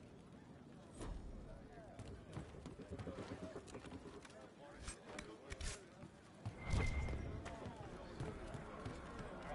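Footsteps thud quickly across wooden boards.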